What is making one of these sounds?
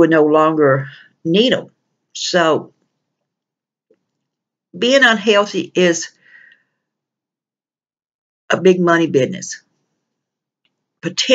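A middle-aged woman speaks calmly in short bursts into a close microphone, with pauses between phrases.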